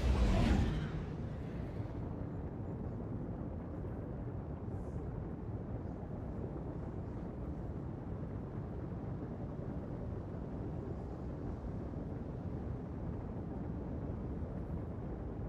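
A spaceship engine drones with a deep, steady rumble.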